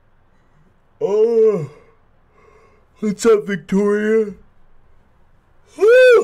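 A young man shouts and yells loudly and excitedly close to a microphone.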